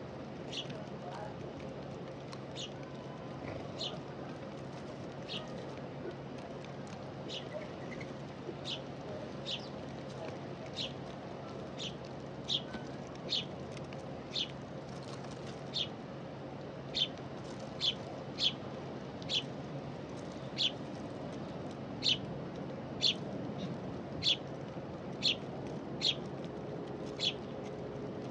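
Doves peck at scattered seeds close by with sharp little taps.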